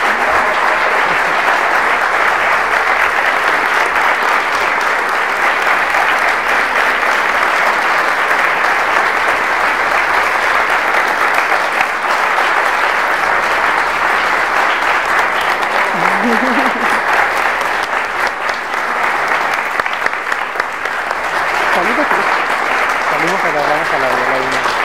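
A large audience applauds loudly and steadily.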